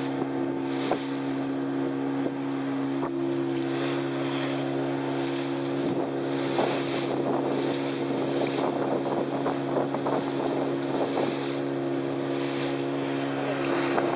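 Wind blows across the open water.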